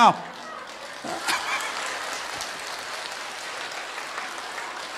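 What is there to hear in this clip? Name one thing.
A large crowd claps and applauds.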